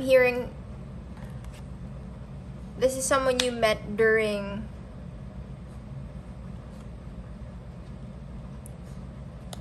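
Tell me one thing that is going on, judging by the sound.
Playing cards slide and tap softly onto a cloth surface.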